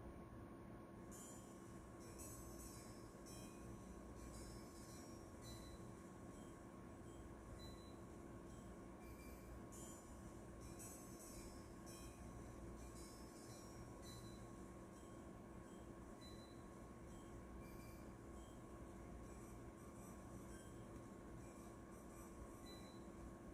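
Tinny game music plays quietly from a small speaker.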